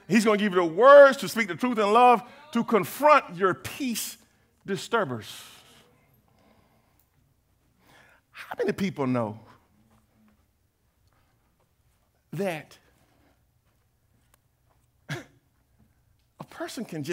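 A man preaches with animation through a headset microphone, with long pauses.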